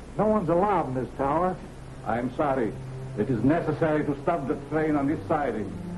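A second man answers tensely.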